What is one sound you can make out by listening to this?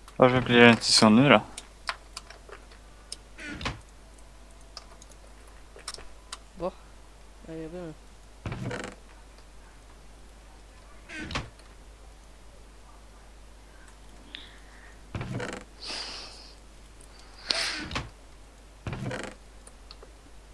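A wooden chest creaks open and thumps shut several times.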